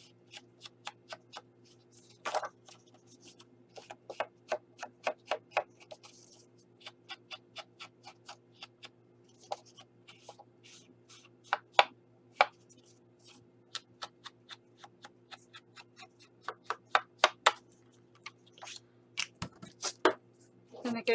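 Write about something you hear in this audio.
A small tool taps repeatedly against paper.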